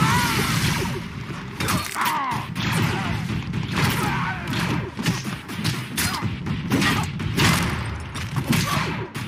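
Heavy blows clang against metal armour.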